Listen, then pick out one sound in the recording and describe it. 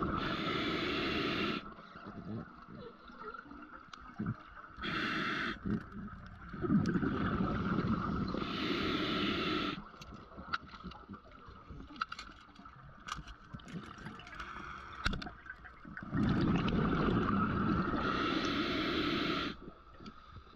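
A diver breathes out through a regulator, with bubbles rushing and gurgling loudly in bursts underwater.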